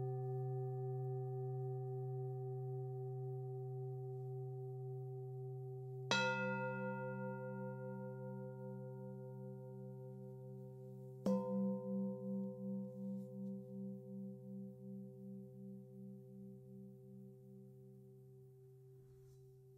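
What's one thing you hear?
Singing bowls ring with a deep, steady hum.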